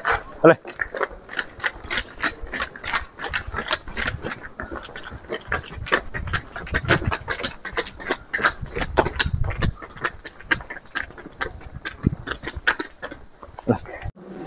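Footsteps shuffle along a concrete path.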